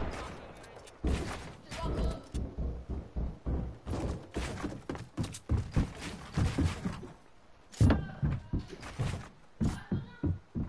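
Building pieces snap into place with quick, sharp clacks.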